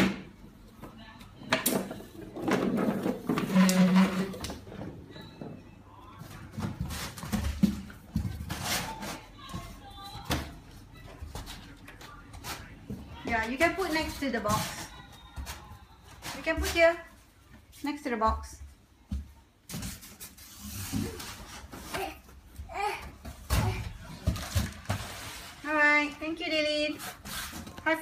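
Cardboard boxes scrape and thump close by.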